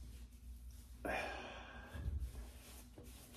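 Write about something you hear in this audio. A towel rubs against a man's face.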